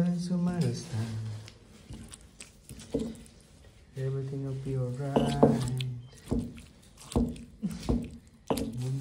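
A stone pestle pounds and grinds food in a stone mortar.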